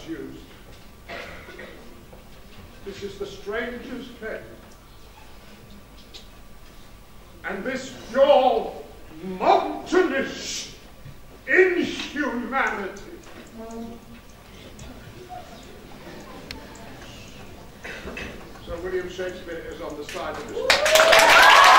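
An elderly man speaks with animation to an audience in a large echoing hall.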